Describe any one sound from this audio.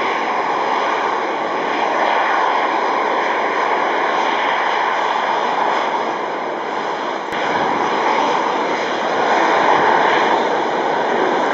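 A jet airliner's engines roar steadily as it taxis nearby.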